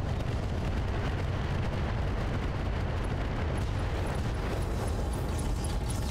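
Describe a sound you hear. Missiles whoosh through the air.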